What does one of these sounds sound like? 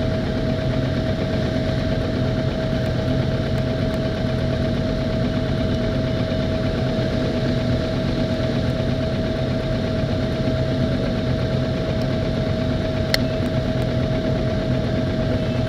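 Motorcycle engines idle with a steady low rumble close by.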